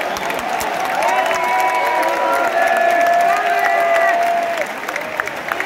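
Supporters close by shout and sing loudly.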